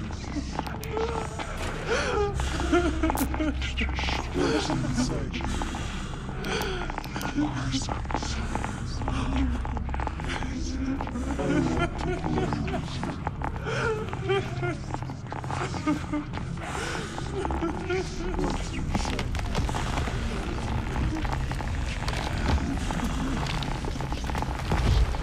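A young man talks animatedly into a microphone, close by.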